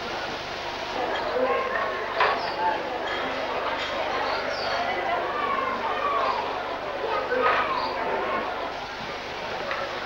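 People's voices call out from balconies and the street outdoors.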